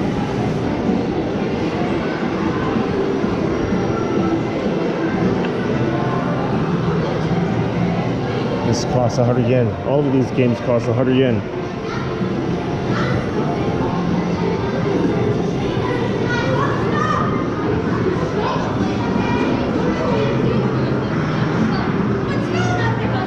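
Arcade game machines play bright electronic music and jingles.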